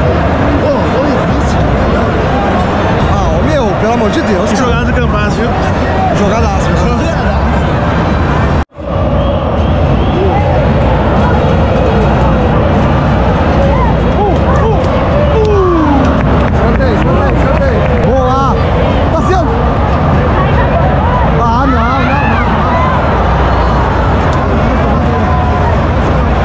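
A large stadium crowd roars and chants all around.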